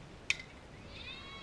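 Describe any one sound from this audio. A metal bat strikes a softball with a sharp ping.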